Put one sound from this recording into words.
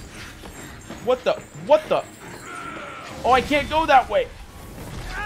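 A man shouts and exclaims with alarm into a close microphone.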